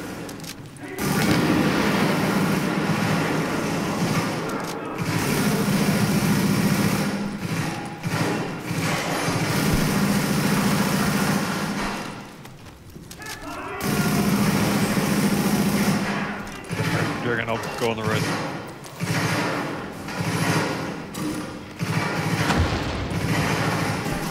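Rifles fire in rapid, loud bursts.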